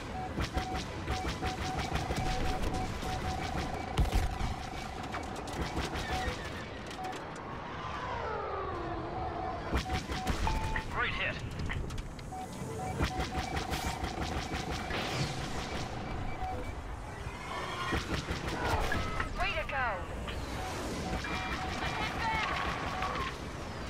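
Laser cannons fire in rapid bursts.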